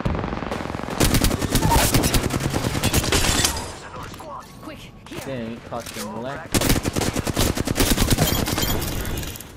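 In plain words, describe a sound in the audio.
Rapid gunfire rattles loudly in bursts.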